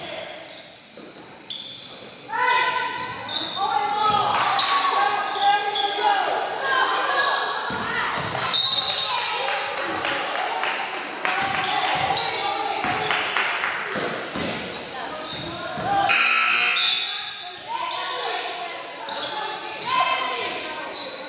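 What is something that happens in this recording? Players and spectators shout and call out in a large echoing gym.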